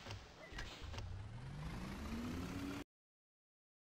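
A bus engine revs up as the bus pulls away.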